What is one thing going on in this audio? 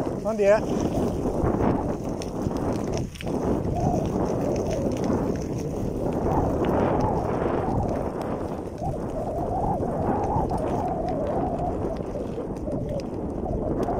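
Bicycle tyres crunch steadily over a gravel path.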